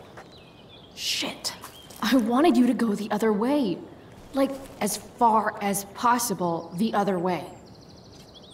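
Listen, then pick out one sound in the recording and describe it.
A young woman speaks irritably and close by.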